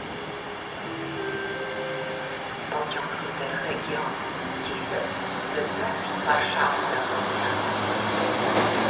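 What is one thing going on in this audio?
An electric locomotive pulling carriages rumbles closer and grows louder.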